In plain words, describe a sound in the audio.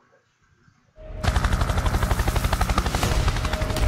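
A helicopter's rotor thumps rapidly and steadily close by.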